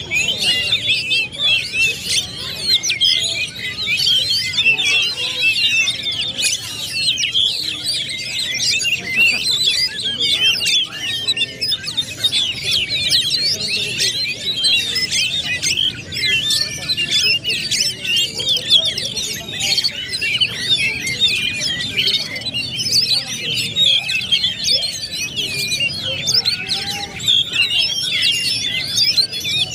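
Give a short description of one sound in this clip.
Caged songbirds sing fast, warbling, chirping songs throughout.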